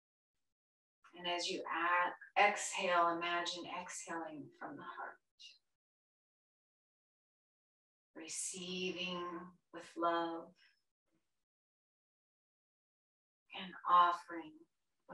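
A woman speaks calmly and slowly up close, with long pauses.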